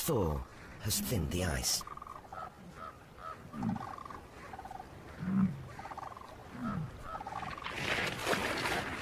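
A bison grunts low and deep.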